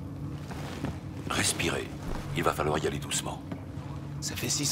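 A man speaks calmly and reassuringly.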